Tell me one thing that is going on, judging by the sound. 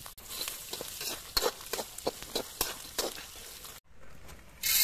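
Peanuts sizzle in hot oil.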